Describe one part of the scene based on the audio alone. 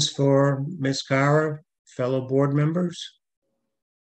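An elderly man speaks calmly over an online call.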